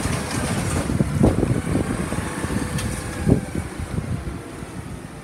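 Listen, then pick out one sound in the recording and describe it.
Metal parts of a garbage truck clank and rattle.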